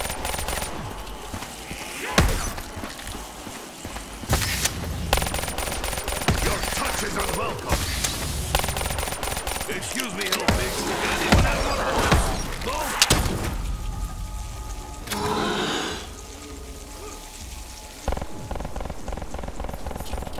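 Guns fire in sharp bursts.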